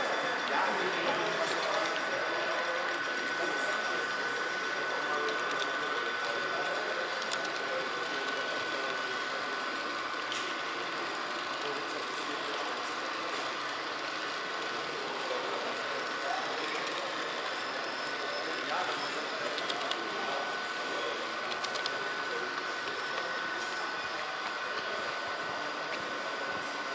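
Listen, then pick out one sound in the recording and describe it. A small model train hums and rattles steadily along its track.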